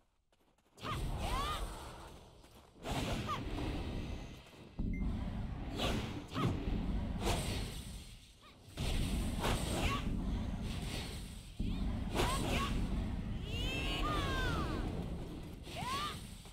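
Magic spells whoosh and burst again and again, with ringing, swirling tones.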